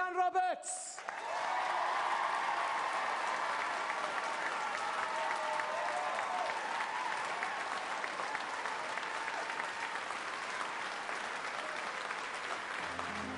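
An audience applauds and cheers in a large hall.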